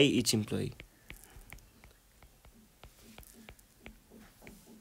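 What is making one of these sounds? A stylus taps lightly on a tablet's glass.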